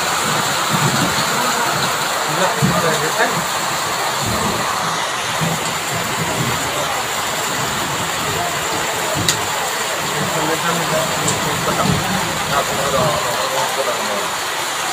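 A man speaks calmly and steadily into a microphone, close by.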